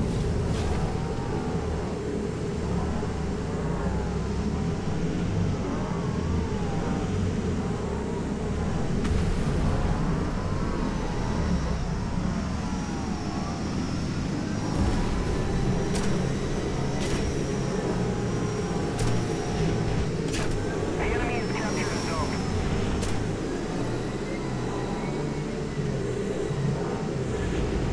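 A hovering craft's engine drones steadily throughout.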